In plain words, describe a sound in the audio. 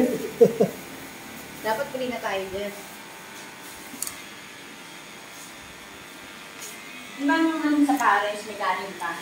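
Electric hair clippers buzz close by.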